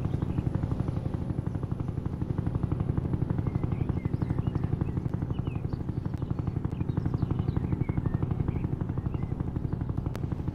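Helicopter rotor blades thump rapidly and steadily close by.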